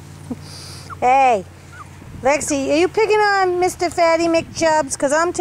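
A dog whines and yelps loudly in high, wavering cries.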